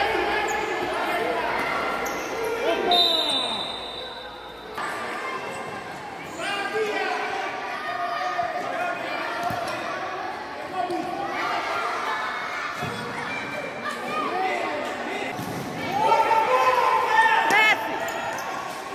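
Children shout and cheer in a large echoing hall.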